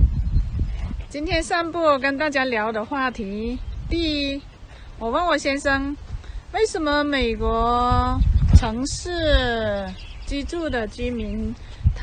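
A woman talks calmly and close up.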